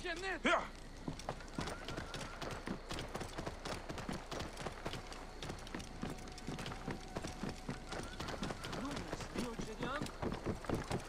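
Horse hooves clop steadily on the ground.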